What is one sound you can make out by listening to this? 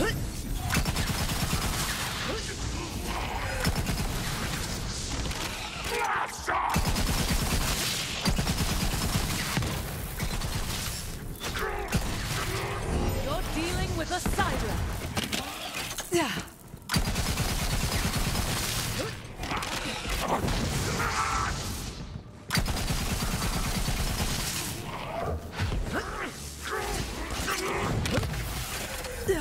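Guns fire in rapid bursts with crackling energy blasts.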